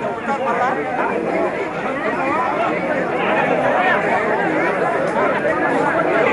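A crowd of men and women talks all at once, close by and loudly.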